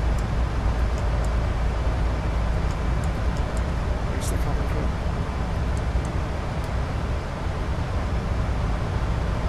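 A jet engine hums and roars steadily from inside an aircraft cockpit.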